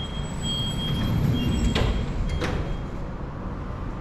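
Elevator doors slide shut with a rumble.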